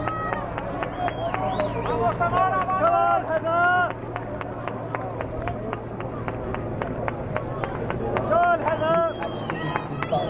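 Bicycle wheels tick as they are wheeled along.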